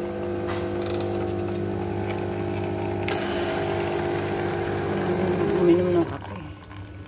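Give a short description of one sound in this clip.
A coffee machine hums and whirs loudly.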